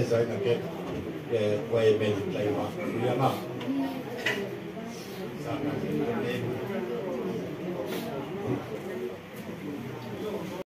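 An elderly man speaks into a microphone through loudspeakers, echoing in the room.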